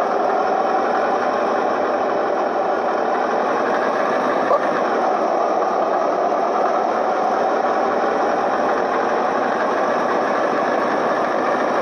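A bus engine drones steadily while driving.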